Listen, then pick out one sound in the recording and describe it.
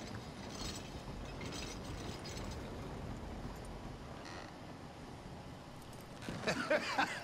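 Horse hooves clop on a wooden floor.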